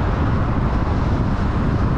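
A large truck rumbles past close by.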